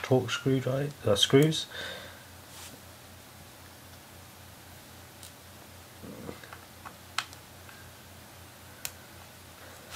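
A small screwdriver taps and clicks against metal parts.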